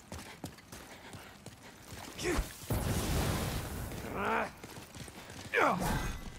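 Armoured footsteps run over stone.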